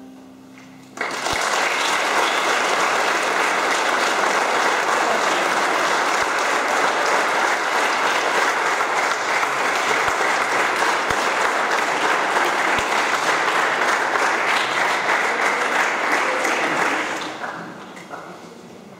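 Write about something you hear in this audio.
An audience claps loudly and steadily, then the clapping dies away.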